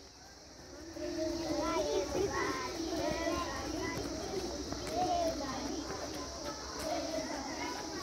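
Children chatter and sing softly in the background.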